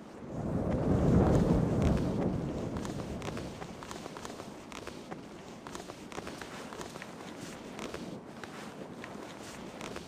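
Hands scrabble against stone while climbing.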